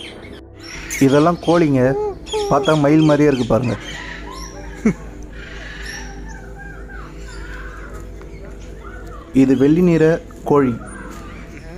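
A bird calls loudly nearby with harsh, wavering cries.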